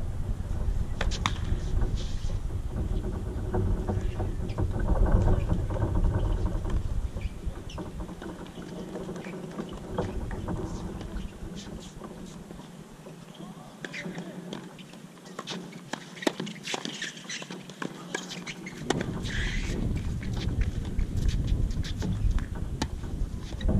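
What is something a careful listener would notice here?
A tennis ball is struck sharply with a racket, again and again.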